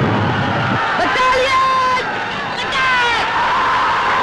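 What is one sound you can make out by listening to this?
A man shouts loudly.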